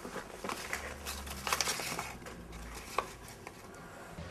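Paper rustles and crinkles in a woman's hands.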